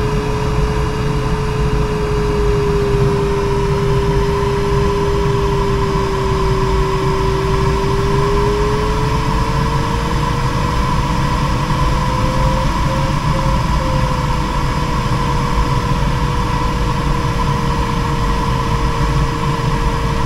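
An electronic tone hums steadily, slowly dipping and then rising in pitch.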